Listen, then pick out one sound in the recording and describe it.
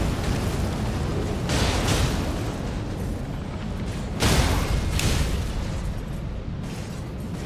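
A blade swings and strikes repeatedly.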